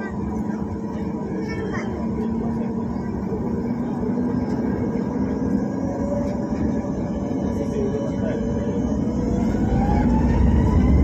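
Jet engines roar steadily from inside an aircraft cabin, growing louder.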